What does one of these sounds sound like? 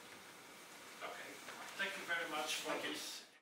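A man speaks into a microphone in a large echoing hall.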